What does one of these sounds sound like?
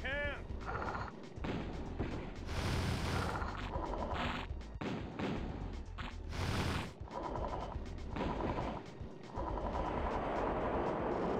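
Tank engines rumble low and steadily.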